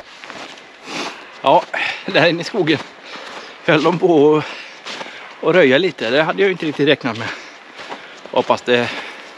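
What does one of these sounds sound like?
A middle-aged man talks calmly, close by, outdoors.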